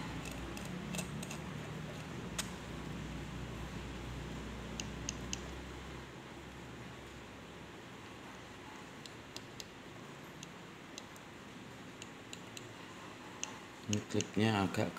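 Fingers click and rub against a small metal tube as it is turned.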